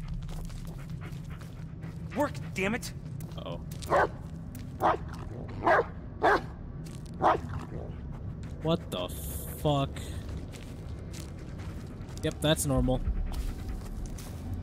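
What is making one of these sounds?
Footsteps crunch over dry leaves and twigs.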